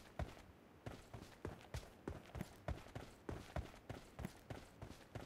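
A rifle fires rapid single shots in a steady rhythm.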